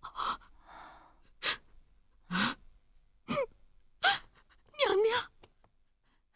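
A young woman speaks tearfully in short, broken phrases, close by.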